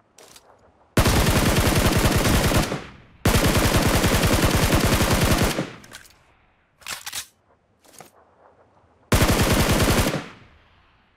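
A rifle fires rapid bursts of automatic gunfire.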